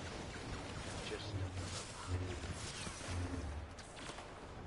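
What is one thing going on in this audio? A lightsaber hums and clashes.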